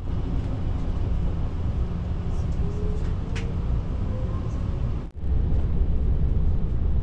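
A train rumbles low and steady, heard from inside a carriage.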